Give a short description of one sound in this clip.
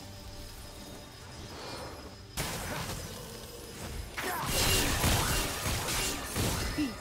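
Video game spell and attack sound effects whoosh and crackle.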